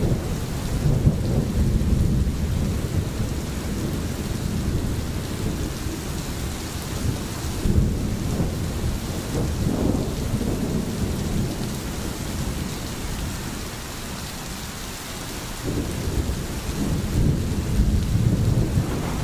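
A stream gurgles and splashes over rocks.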